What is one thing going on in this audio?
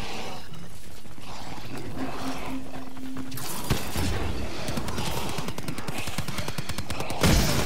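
An energy weapon fires with crackling, zapping bursts.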